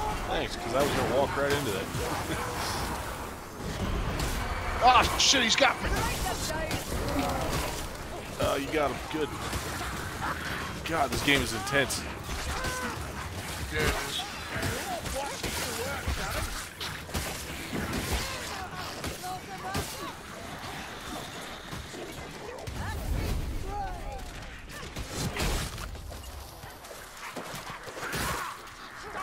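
Blades hack and slash into enemies in rapid, heavy blows.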